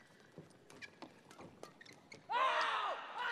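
A shuttlecock is struck sharply with rackets.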